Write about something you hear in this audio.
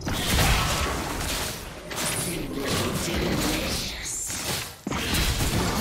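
Sharp hits and impacts land repeatedly.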